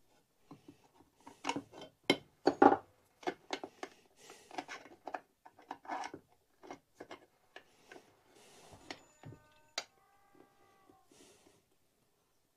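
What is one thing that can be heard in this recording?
Metal parts click and clatter as hands work on a small engine part.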